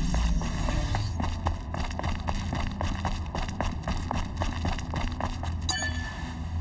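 Footsteps crunch quickly on dry ground.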